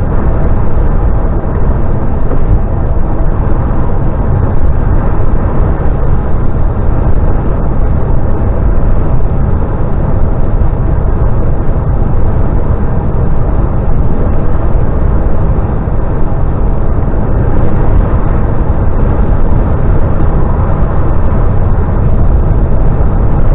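A vehicle's engine drones steadily as it drives along a road.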